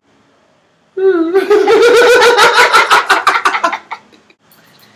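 A man laughs loudly and heartily close by.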